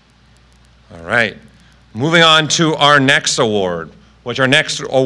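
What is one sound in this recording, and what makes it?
A second man speaks into a microphone.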